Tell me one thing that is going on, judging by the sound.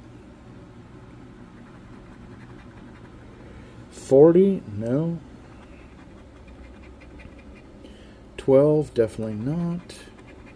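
A coin scratches at a paper ticket.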